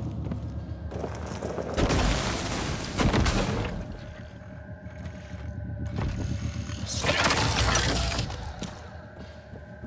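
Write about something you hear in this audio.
A game weapon fires with a loud, rushing blast.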